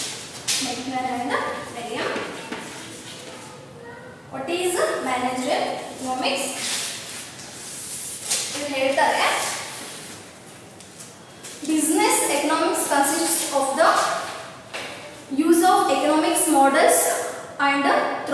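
A woman speaks calmly and clearly, as if teaching, in a room with some echo.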